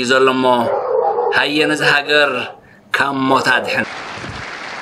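A man speaks formally into a microphone over a loudspeaker outdoors.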